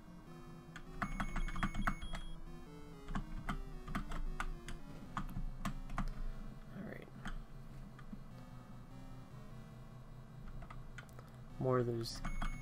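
Short electronic game sound effects beep and blip.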